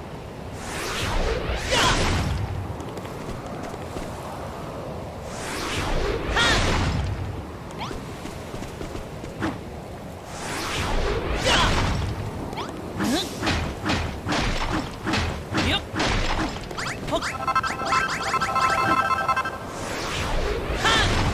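A game character's hammer smashes blocks with bursting crashes.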